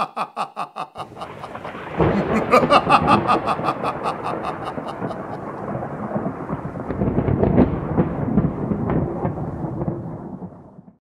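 Thunder rumbles and cracks.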